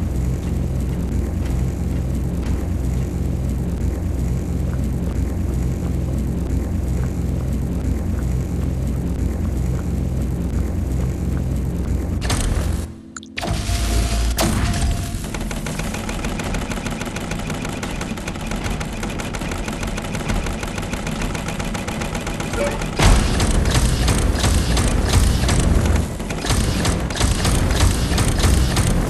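An energy beam crackles and fizzes in short bursts.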